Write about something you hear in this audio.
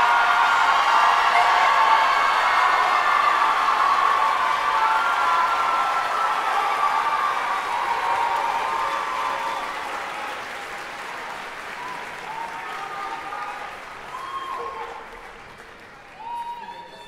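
An audience applauds in a large hall, slowly fading.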